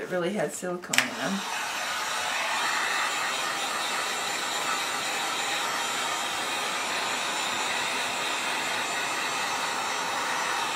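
A heat gun blows with a steady whooshing roar.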